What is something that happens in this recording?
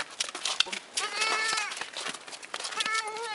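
A goat bleats loudly close by.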